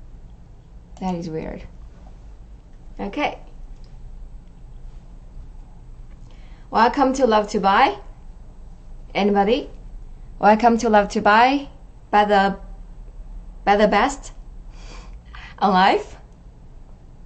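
A young woman speaks close to the microphone in short, lively bursts with pauses between them.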